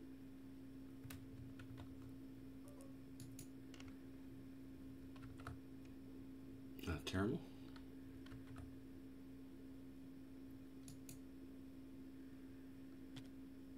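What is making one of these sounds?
Small fires crackle softly.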